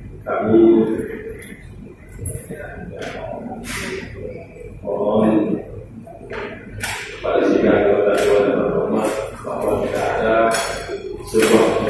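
A man gives a speech through a microphone and loudspeakers in a large echoing hall.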